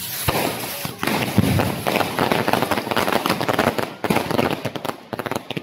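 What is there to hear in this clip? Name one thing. Fireworks crackle and pop rapidly overhead.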